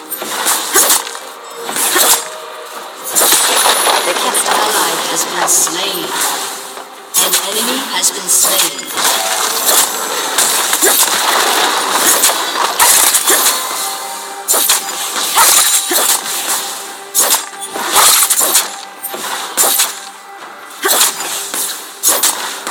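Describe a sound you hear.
Game combat effects clash and crackle with spell blasts and sword hits.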